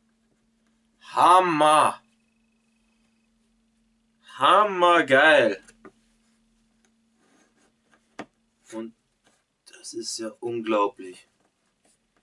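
A young man speaks close by in short bursts.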